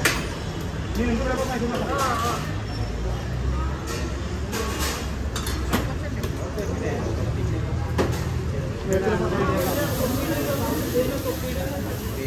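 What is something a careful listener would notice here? A crowd of men talk and murmur nearby.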